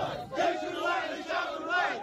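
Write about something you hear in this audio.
A man cheers and shouts loudly.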